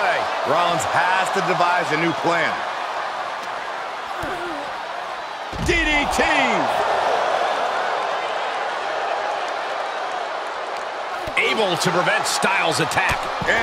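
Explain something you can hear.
A crowd cheers and roars steadily.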